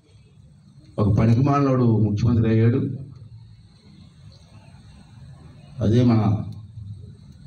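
A middle-aged man speaks forcefully into a microphone close by.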